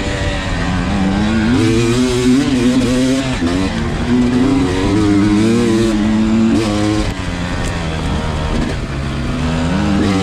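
A dirt bike engine revs and whines up and down close by.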